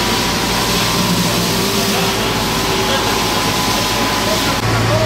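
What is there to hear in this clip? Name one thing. A pressure hose jet sprays water onto paving.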